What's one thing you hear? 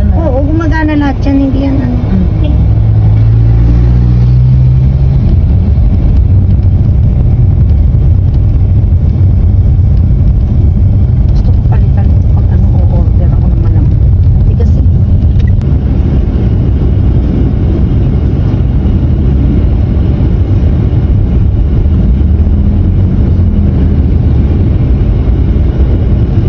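A car engine hums steadily with road rumble from inside a moving car.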